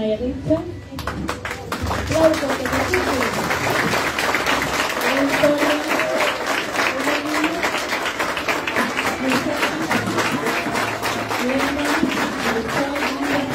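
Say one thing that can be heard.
A crowd applauds warmly.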